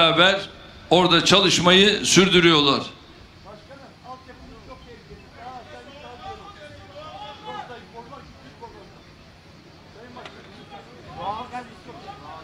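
An elderly man speaks into a microphone through loudspeakers, in a calm, measured way.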